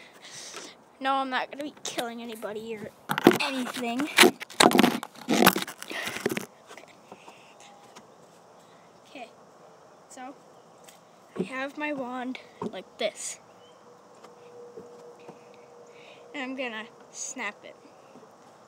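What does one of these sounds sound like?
A young boy talks with animation close to the microphone.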